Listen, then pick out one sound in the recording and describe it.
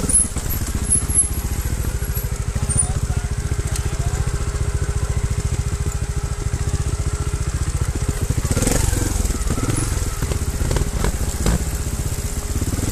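Tyres crunch and bump over rocks and dirt.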